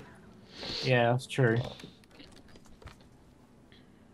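A wooden crate lid creaks open.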